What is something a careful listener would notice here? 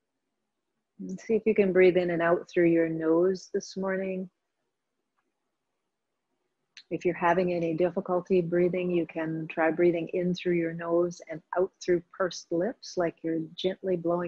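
A woman speaks calmly and slowly, close to the microphone.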